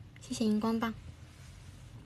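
A young woman speaks briefly and softly, close to a phone microphone.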